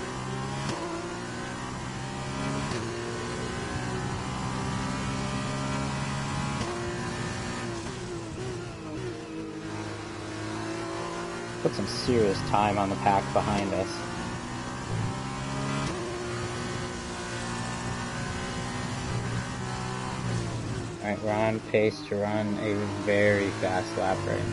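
A racing car engine whines loudly, rising in pitch and dropping sharply with each gear change.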